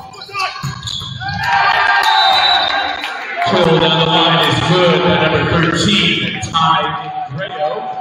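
A crowd cheers and yells.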